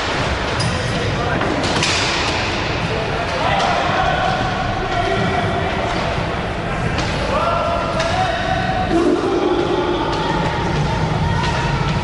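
Roller skate wheels rumble across a wooden floor.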